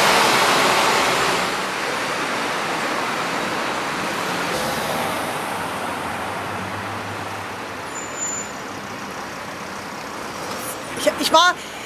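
Traffic hums along a street.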